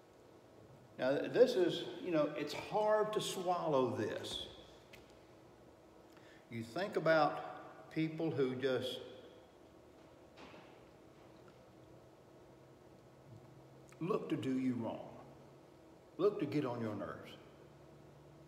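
An elderly man speaks with animation, pausing between phrases.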